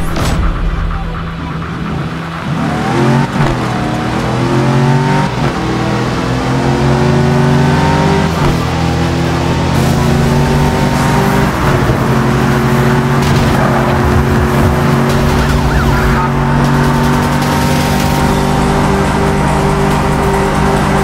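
Tyres roar on the road at high speed.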